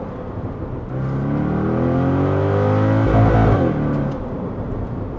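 A car engine revs up, rising in pitch, then settles.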